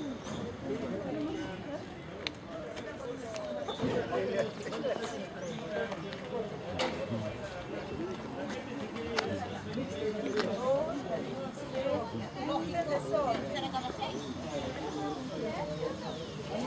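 Several adults talk at once outdoors.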